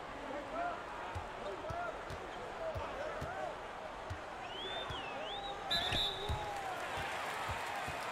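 A ball bounces on a hardwood court.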